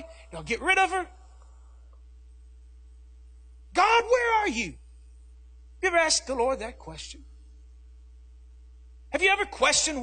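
A man speaks into a microphone in short bursts with pauses, his voice amplified in a large room.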